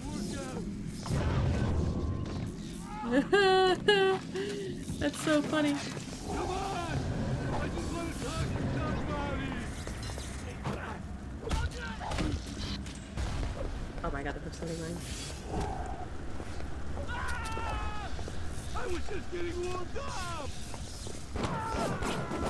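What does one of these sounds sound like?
A young woman talks with animation through a microphone.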